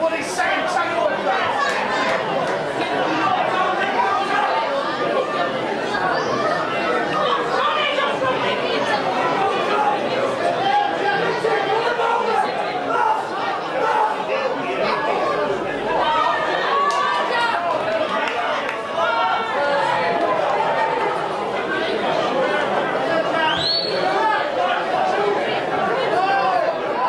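A crowd of men and women chatters and shouts close by, outdoors.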